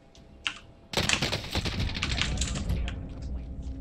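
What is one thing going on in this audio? A rapid burst of gunfire rings out loudly.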